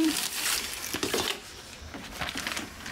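Wrapping paper crinkles.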